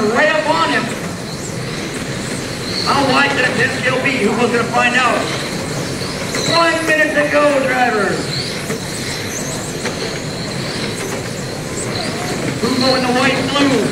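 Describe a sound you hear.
Small electric race cars whine as they speed around a track.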